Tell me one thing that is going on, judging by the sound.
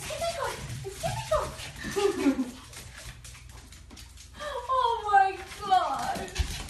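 A young woman talks to dogs in a high, excited voice, close by.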